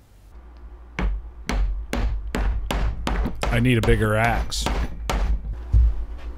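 A mallet strikes a chisel into a log with sharp knocks.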